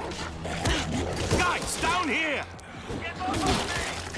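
A blade slashes and thuds into flesh.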